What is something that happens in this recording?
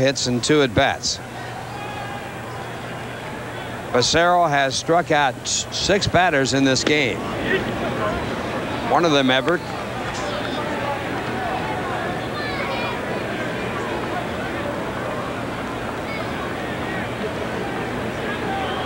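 A crowd murmurs steadily in a large open stadium.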